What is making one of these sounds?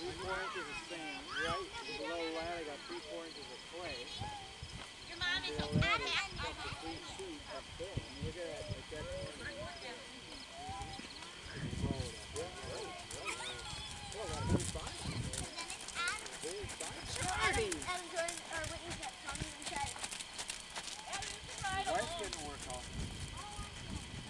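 A young girl talks excitedly.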